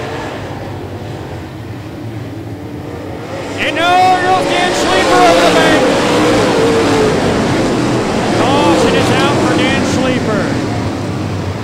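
Race car engines roar and rev loudly.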